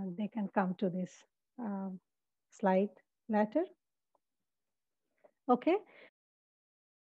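A woman speaks calmly through a microphone, heard as on an online call.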